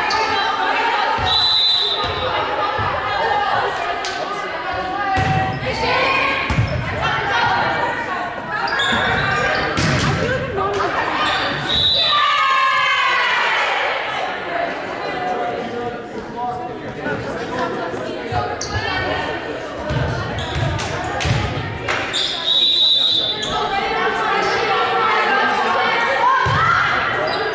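A volleyball thuds against hands and forearms.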